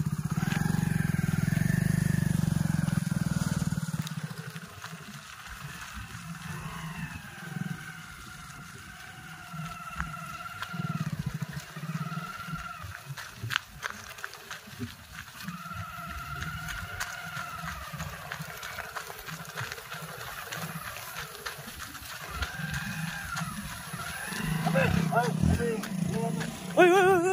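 A motorcycle engine idles and revs, then pulls away and fades into the distance.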